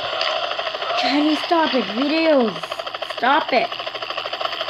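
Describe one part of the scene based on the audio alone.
A boy speaks close to a microphone.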